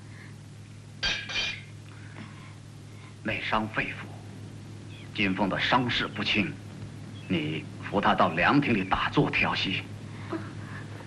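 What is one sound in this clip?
A man speaks calmly and firmly, close by.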